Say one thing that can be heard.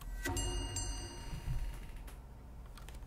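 A bell rings brightly and fades.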